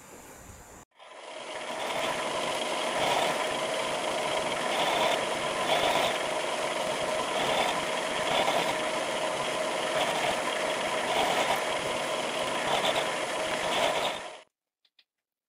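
A milling machine whirs and grinds as an end mill cuts into metal.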